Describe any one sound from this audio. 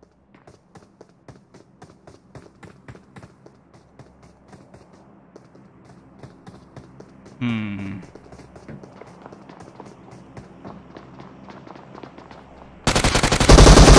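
Footsteps patter quickly and steadily.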